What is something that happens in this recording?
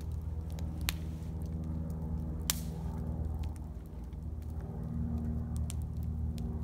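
A small fire crackles and pops.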